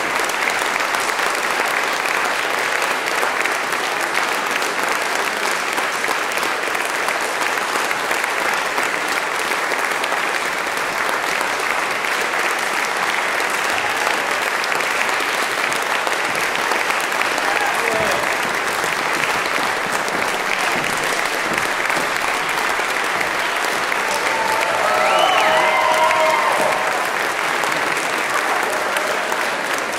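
An audience applauds steadily in an echoing hall.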